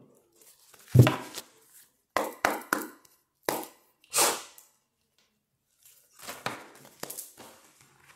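Cards rustle and flick in a young man's hands.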